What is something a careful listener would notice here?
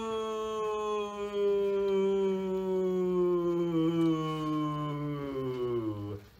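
A young woman holds a long sung vowel that slowly slides down in pitch, close by.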